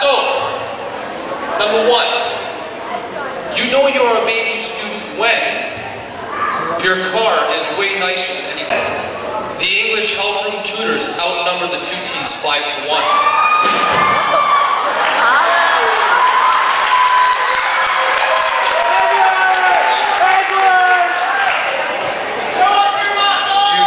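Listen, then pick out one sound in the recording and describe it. A man talks with animation into a microphone over loudspeakers in an echoing hall.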